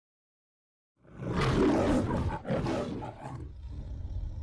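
A lion roars loudly, twice.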